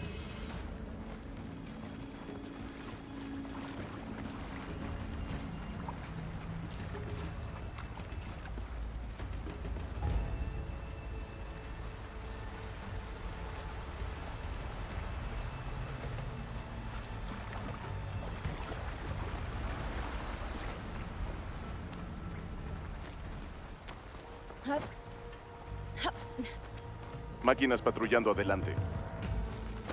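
Footsteps run through shallow water and rustling plants.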